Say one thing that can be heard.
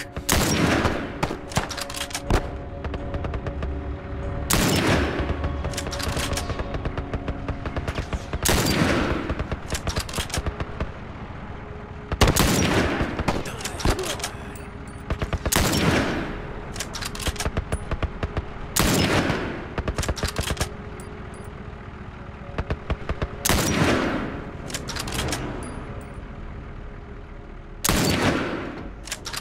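A rifle fires loud shots every few seconds, each echoing away.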